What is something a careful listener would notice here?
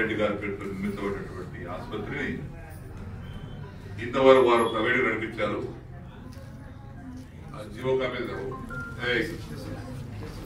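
A middle-aged man speaks into a microphone over a loudspeaker, in a reverberant room.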